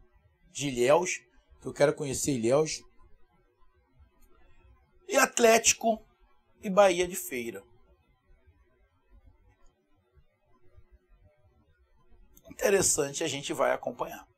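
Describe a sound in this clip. A middle-aged man speaks with animation into a close microphone, in short bursts with pauses.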